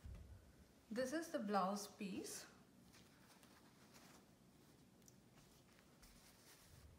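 Silk fabric rustles softly as it is handled.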